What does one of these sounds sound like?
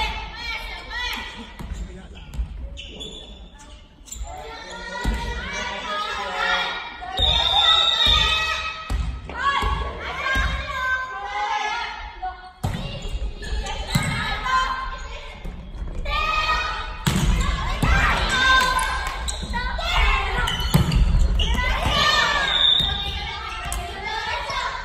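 Young players call out and shout to each other in a large echoing hall.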